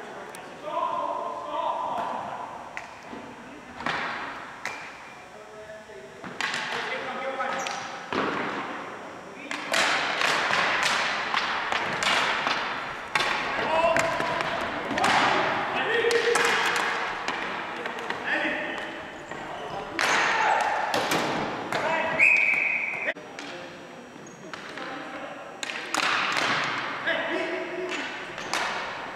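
Hockey sticks clack against a ball and the hard floor in a large echoing gym.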